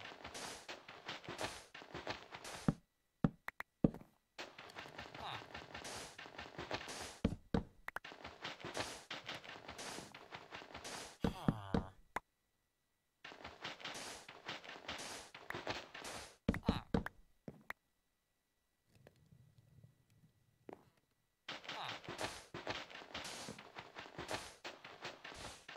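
Blocks of sand crunch as they are dug out in a video game.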